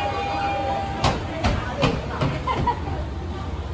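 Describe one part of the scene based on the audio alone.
Train doors thud and clatter shut.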